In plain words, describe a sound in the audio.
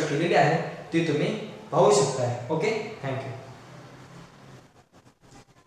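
A young man speaks animatedly and close by.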